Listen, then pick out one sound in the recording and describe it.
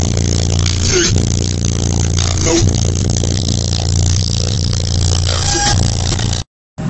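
Loud, booming bass music pounds from big subwoofers in a car.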